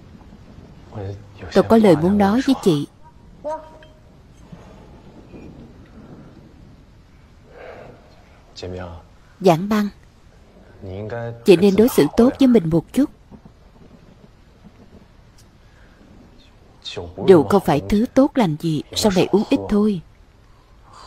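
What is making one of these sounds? A young man speaks softly and close by.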